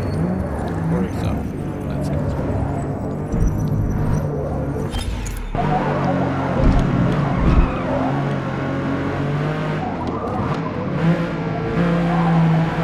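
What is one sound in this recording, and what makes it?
A car engine roars and revs up and down as the car races.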